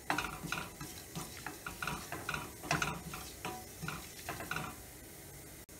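A spatula stirs and scrapes spices in a metal pan.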